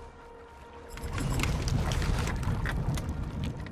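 Weapons clash and spells zap in a fast game battle.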